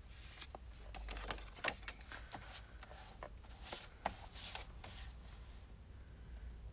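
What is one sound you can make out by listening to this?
Paper rustles and slides across a hard surface.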